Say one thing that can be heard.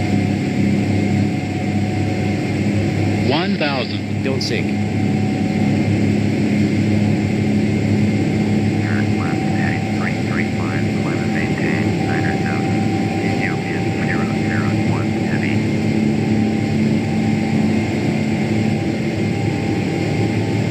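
Jet engines hum steadily from inside a cockpit.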